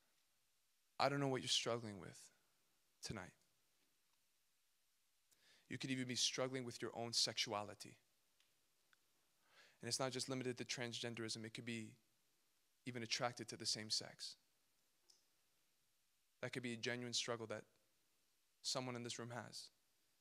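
A young man speaks calmly into a microphone, in bursts with pauses.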